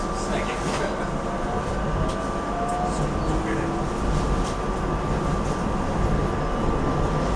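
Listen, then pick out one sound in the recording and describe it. A train rumbles steadily along the rails from inside the cab.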